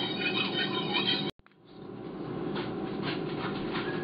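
Metal tongs clink against a pot.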